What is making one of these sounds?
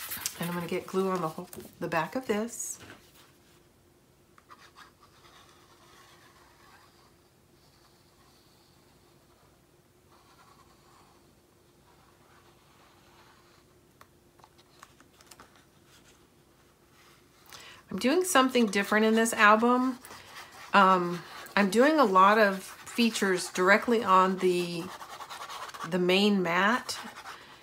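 Paper rustles softly as it is handled.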